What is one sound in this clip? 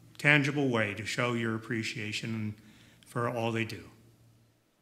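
An older man speaks calmly and warmly, close to a microphone.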